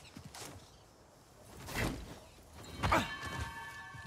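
A thud sounds as a man lands from a jump.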